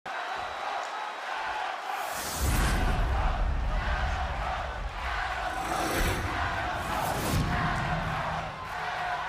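A large crowd cheers and roars in an echoing arena.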